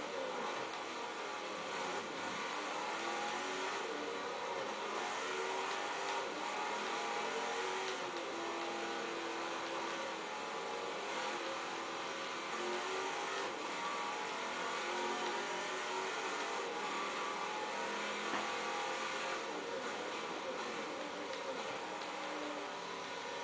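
A racing car engine roars and revs up and down through gear changes.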